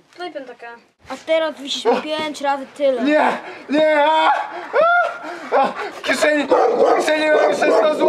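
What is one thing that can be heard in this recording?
A young man speaks loudly up close outdoors.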